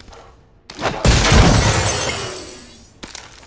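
A supply crate opens with a loud whooshing burst.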